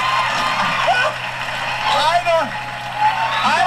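A man speaks into a microphone with excitement.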